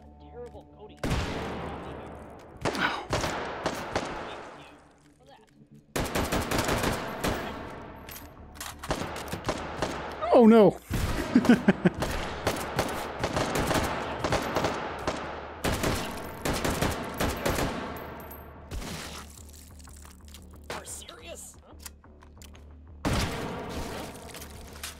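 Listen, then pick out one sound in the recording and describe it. A rifle fires in rapid bursts of loud, echoing shots.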